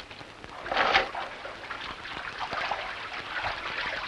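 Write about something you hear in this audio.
Water splashes around a man wading beside a boat.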